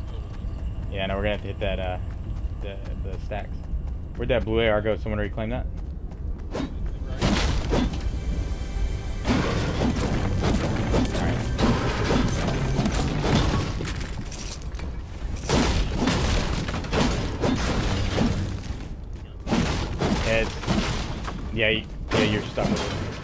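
A young man talks into a headset microphone with animation.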